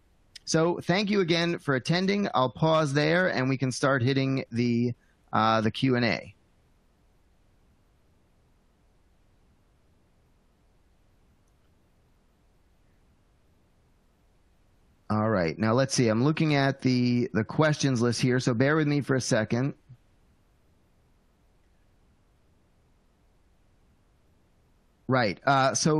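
A middle-aged man speaks calmly into a close microphone, with long pauses.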